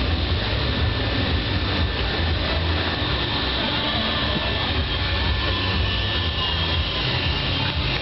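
Loud music with a heavy beat plays over loudspeakers.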